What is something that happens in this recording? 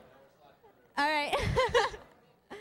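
A young woman talks excitedly into a microphone.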